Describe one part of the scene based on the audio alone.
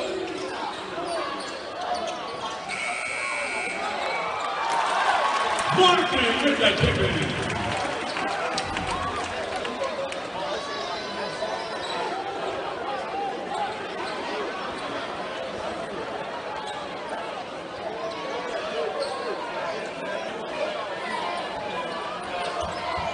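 A crowd chatters and cheers throughout a large echoing arena.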